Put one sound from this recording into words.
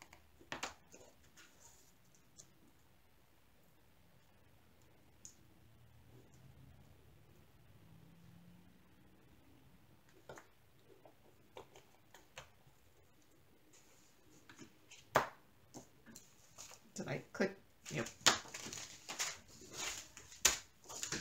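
Small plastic containers click and rattle as hands handle them.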